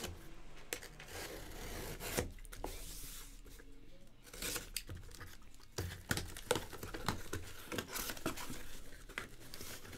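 A cardboard box thumps and rustles as hands handle it.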